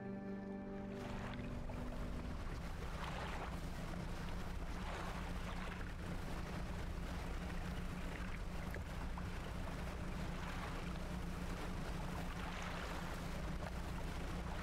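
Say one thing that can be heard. Water splashes and washes against a moving boat's hull.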